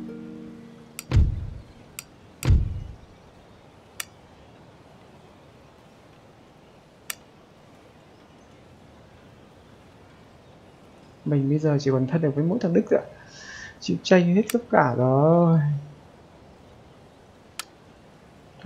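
Soft interface clicks sound now and then.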